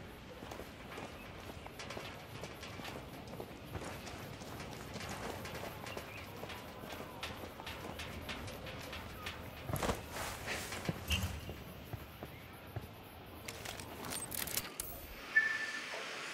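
Footsteps crunch and shuffle over rough ground.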